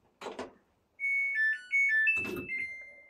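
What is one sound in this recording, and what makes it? A washing machine beeps a short electronic melody.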